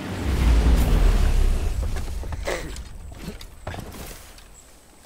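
A boat motor rumbles and then dies away.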